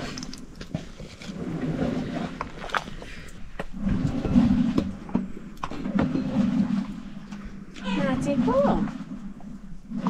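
Chopsticks clatter and scrape against a pot as noodles are stirred.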